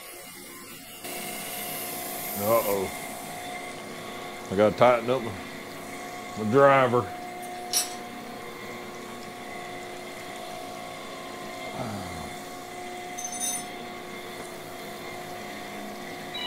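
A grinding machine hums steadily as it grinds a rotating metal shaft.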